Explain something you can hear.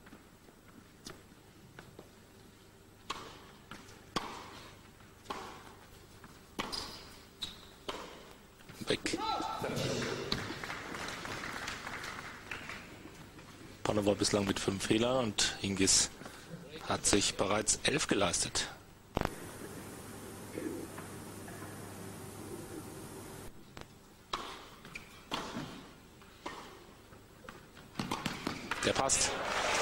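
A tennis ball is struck back and forth by rackets with sharp pops.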